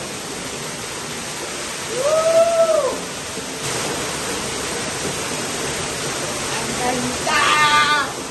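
A waterfall splashes steadily nearby.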